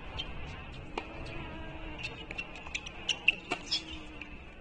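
A tennis ball is struck back and forth with sharp pops of the rackets.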